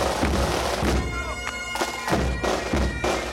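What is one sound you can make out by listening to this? Bagpipes drone and play a tune.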